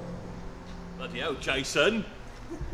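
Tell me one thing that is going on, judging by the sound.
A young man speaks cheerfully, close by.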